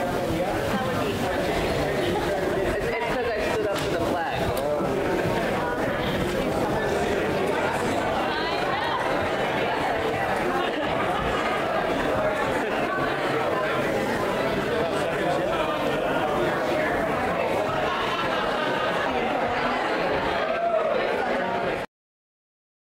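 A crowd of men and women chatter loudly in a large echoing hall.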